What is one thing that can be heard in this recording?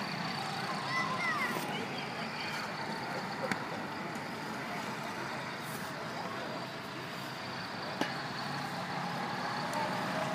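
A go-kart engine drones in the distance.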